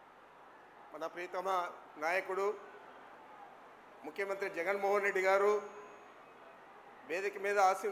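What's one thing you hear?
A middle-aged man speaks firmly into a microphone, heard through loudspeakers.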